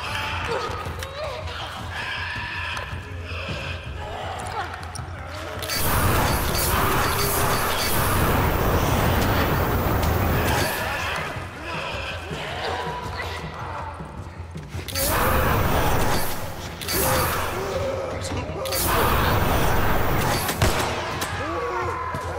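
Burning figures shriek and groan.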